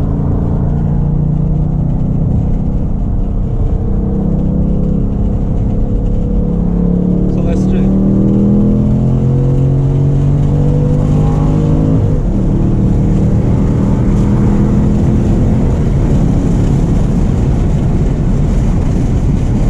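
A car engine hums loudly, rising in pitch as it speeds up and dropping at a gear change.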